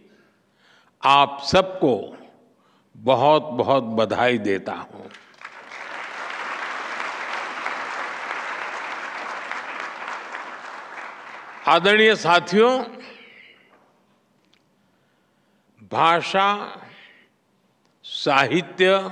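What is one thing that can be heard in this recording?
An elderly man speaks through a microphone in a large hall, with pauses between phrases.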